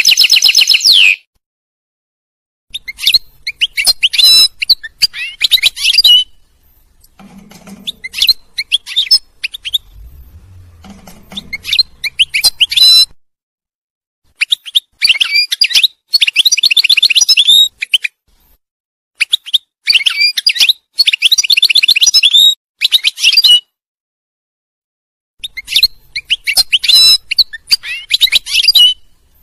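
A small songbird sings close by in rapid twittering bursts with pauses between them.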